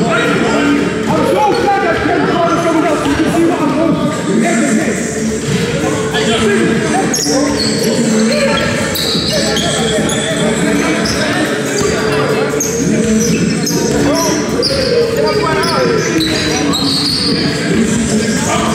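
Sneakers squeak on a hard floor in a large echoing hall.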